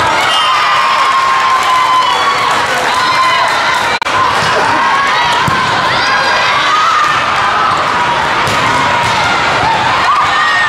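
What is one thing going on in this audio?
A volleyball is struck with a hard slap.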